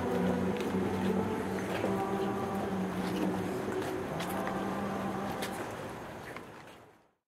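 A crowd sings a slow hymn together outdoors.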